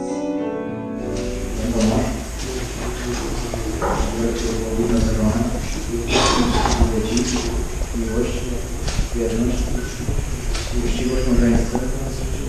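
A man speaks calmly and steadily in an echoing hall.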